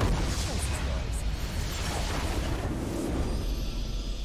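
Game battle effects crash and explode loudly.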